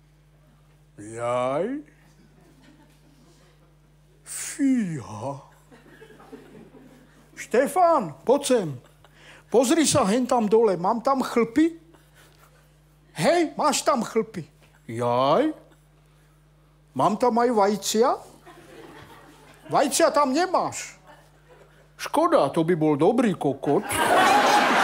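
A middle-aged man talks with animation in short bursts.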